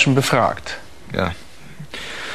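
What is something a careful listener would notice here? A middle-aged man asks a question calmly, close by.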